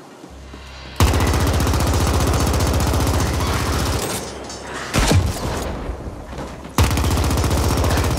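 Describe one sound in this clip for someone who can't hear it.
A gun fires in rapid, continuous bursts.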